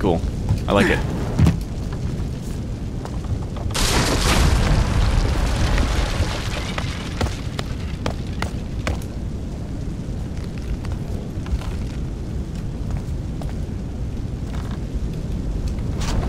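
Fire roars and crackles close by.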